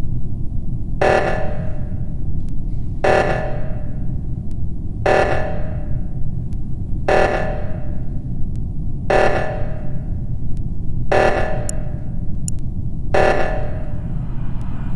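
An alarm blares in short bursts, repeating every two seconds.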